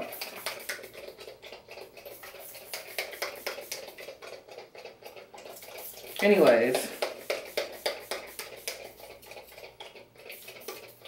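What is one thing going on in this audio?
A spray bottle hisses in quick, repeated bursts.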